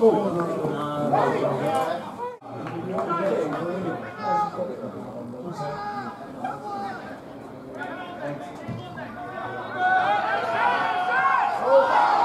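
Men shout to each other outdoors across an open pitch.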